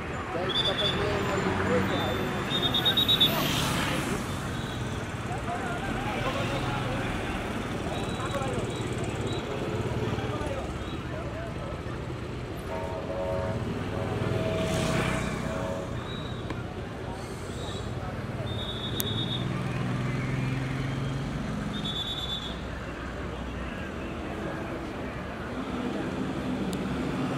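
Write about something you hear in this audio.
Car engines hum as vehicles drive slowly past outdoors.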